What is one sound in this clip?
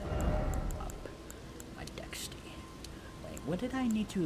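Short soft clicks tick one after another.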